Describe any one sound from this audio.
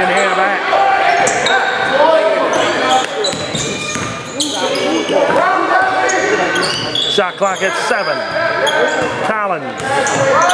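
Sneakers squeak sharply on a wooden court, over and over.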